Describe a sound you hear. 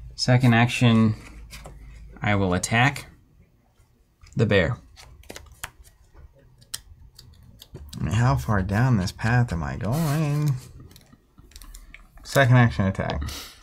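Playing cards rustle and tap on a table.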